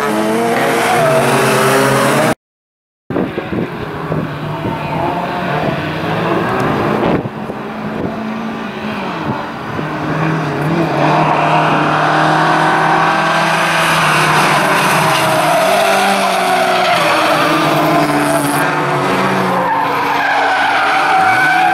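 Tyres screech as a car slides through a bend.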